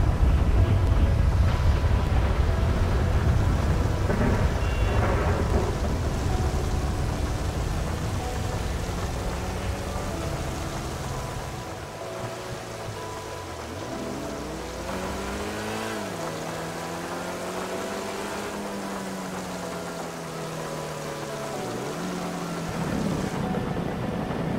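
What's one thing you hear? A sports car engine roars and revs, rising and falling in pitch.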